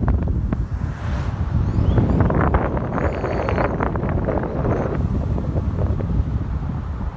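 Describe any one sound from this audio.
Wind buffets loudly and steadily against a moving vehicle.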